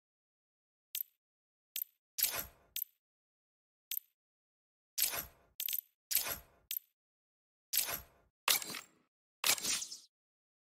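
Menu clicks blip sharply now and then.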